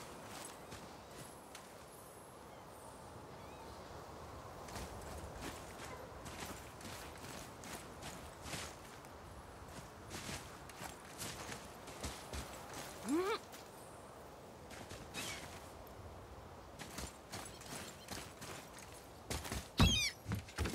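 Heavy footsteps crunch on gravel and rock.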